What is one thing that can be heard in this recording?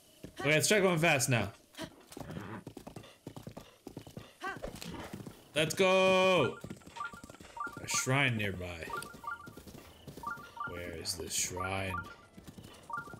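Hooves gallop steadily over grass.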